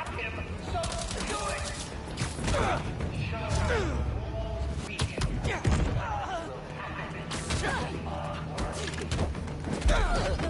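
A man talks into a headset microphone.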